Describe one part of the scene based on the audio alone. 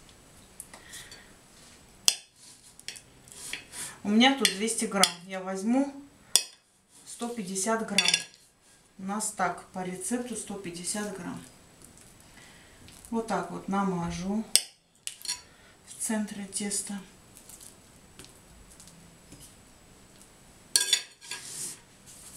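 A knife scrapes and spreads soft butter.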